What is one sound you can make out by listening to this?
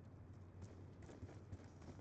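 A pistol fires a single sharp shot.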